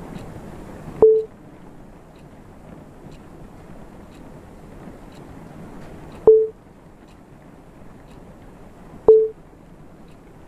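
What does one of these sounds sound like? A short electronic blip sounds at each button press.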